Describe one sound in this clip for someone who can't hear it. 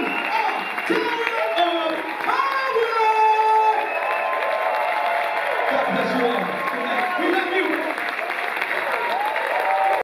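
A live band plays loudly.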